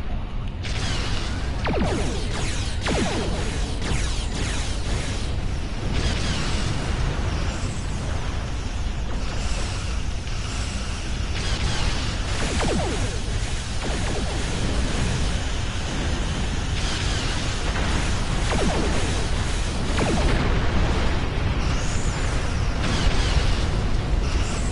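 Explosions boom close by.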